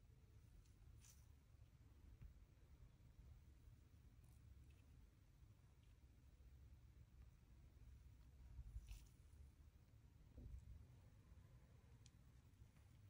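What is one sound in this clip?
Fingers tap softly on a phone's glass.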